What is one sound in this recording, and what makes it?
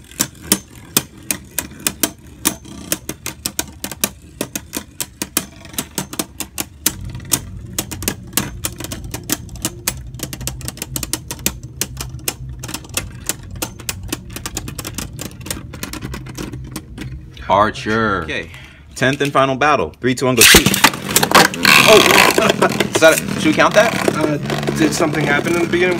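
Spinning tops whir in a plastic bowl.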